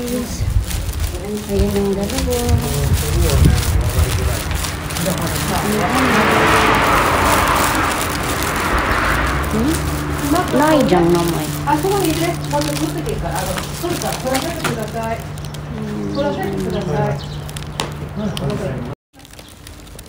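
A young woman talks close to the microphone.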